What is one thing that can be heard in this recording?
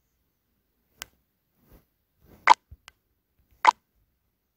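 A game menu clicks as options are picked.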